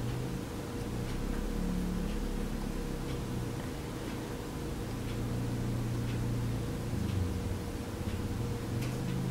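A small tool scrapes softly against clay.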